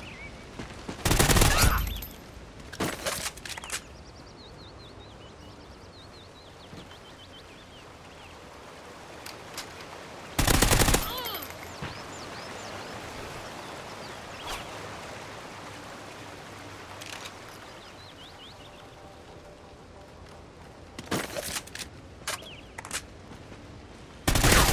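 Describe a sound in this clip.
Gunshots fire in sharp, loud bursts.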